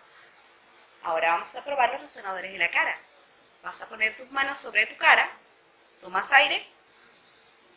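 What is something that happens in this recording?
A middle-aged woman sings short words with animation, close to a microphone.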